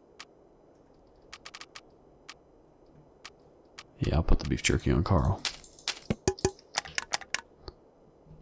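Soft menu clicks tick in quick bursts.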